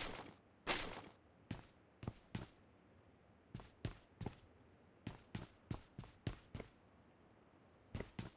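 Footsteps thud quickly on hard stairs.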